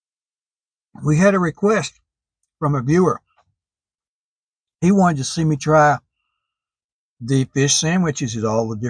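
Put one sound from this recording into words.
An elderly man speaks calmly and closely into a microphone.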